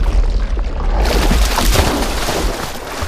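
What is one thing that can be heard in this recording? Water pours over a rock ledge into a pool.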